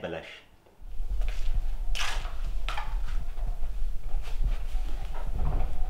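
A woman's footsteps cross a room.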